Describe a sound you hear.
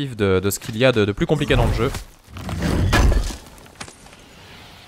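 A heavy chest lid thuds open with a deep rumble.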